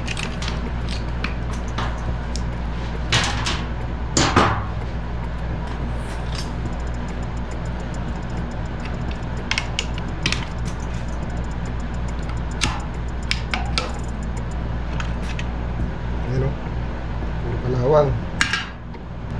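Wires and metal parts click and rattle as hands work on an electric motor.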